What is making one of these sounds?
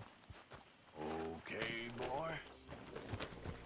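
A horse neighs.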